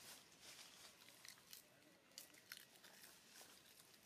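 A monkey chews food with soft crunching.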